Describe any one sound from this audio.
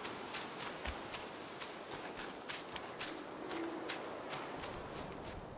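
Footsteps crunch on a leafy forest floor.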